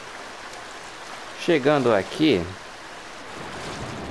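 A waterfall pours and rushes nearby.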